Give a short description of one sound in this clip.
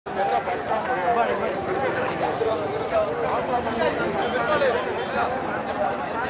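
A large crowd of men chatters outdoors.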